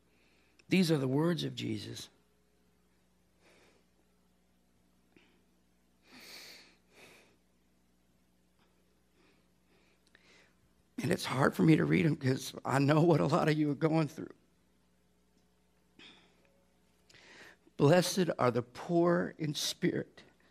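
A middle-aged man speaks with animation through a microphone in a large room, with pauses between phrases.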